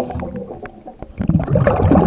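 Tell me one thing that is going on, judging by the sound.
Bubbles gurgle as they rise through the water.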